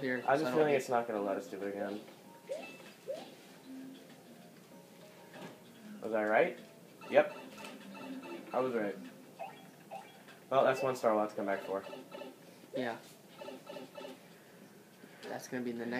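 Video game music and sound effects play from a television.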